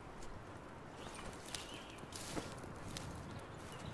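A body drops down into dry grass with a rustle.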